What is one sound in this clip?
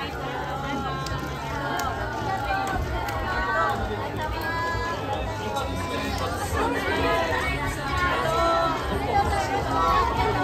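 Hands clap together in high fives.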